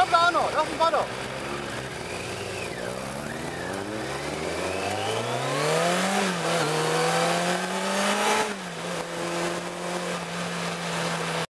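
A car engine revs up and pulls away, then hums steadily.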